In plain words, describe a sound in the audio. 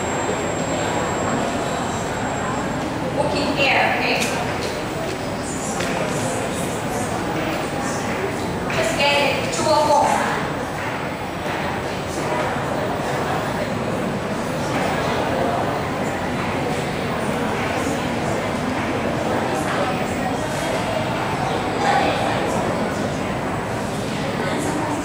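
A young man speaks into a microphone over a loudspeaker in an echoing room.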